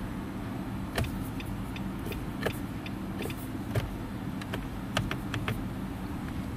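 A car's turn signal clicks.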